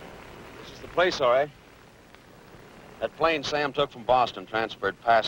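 A young man speaks loudly and sharply nearby.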